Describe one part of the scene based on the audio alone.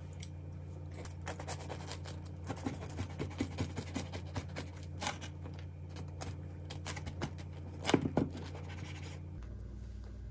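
A knife crunches through crisp toasted bread.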